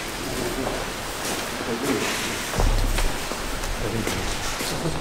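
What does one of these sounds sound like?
Several men talk quietly nearby outdoors.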